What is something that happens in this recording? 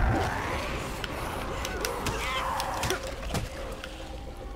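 A heavy blunt weapon thuds wetly into flesh.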